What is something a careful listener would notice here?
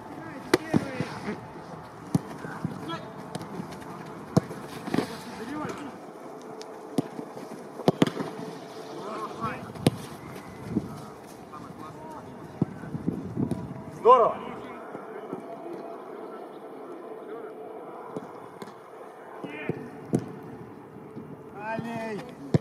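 A football is kicked hard with sharp thuds.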